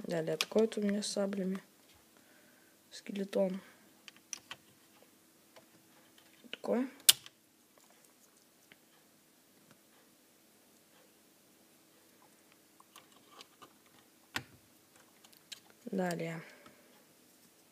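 Small plastic toy figures click against each other as they are picked up and set down.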